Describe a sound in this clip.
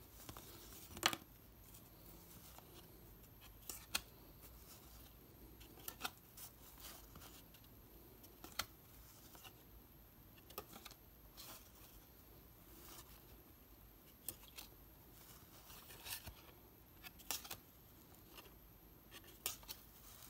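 Stiff cards slap and flick against each other close by, again and again.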